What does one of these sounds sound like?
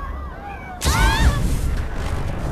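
A blast bursts with a loud boom.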